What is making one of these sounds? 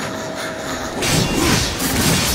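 A blast of magic bursts loudly.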